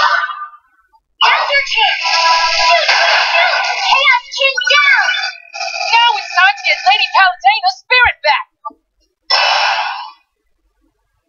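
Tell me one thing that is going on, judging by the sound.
Video game blasts and whooshes play through a small, tinny speaker.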